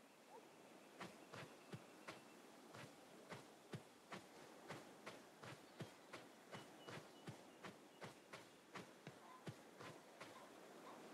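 Footsteps patter quickly and evenly.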